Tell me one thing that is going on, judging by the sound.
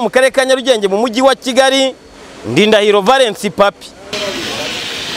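A man speaks clearly into a microphone.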